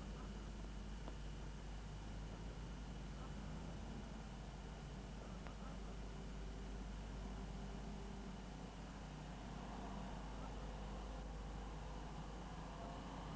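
A car engine hums steadily as the car drives over sand.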